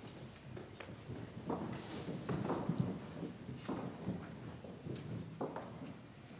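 A piano plays soft notes.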